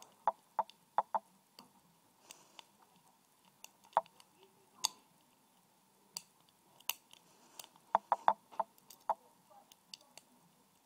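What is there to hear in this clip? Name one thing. A thin metal wire clicks and ticks sharply as fingers bend it.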